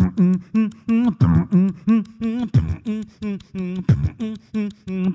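A young man beatboxes rhythmically into a microphone through loudspeakers, with pitched hums and deep kicks.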